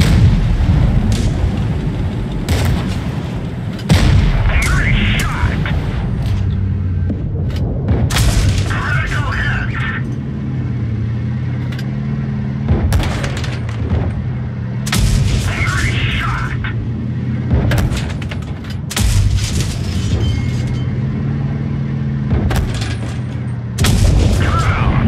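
Tank cannons fire with loud booming blasts.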